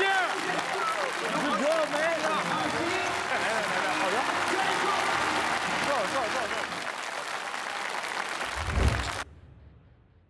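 A large crowd cheers and shouts in an echoing hall.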